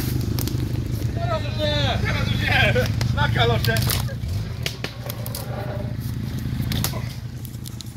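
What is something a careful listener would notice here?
Footsteps crunch on twigs and leaves.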